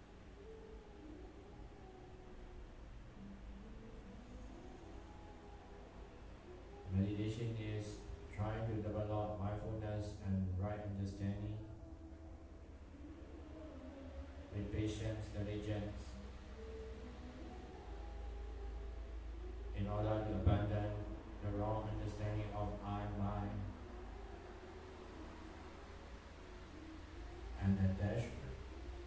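A young man chants melodically into a microphone, heard through a loudspeaker in an echoing room.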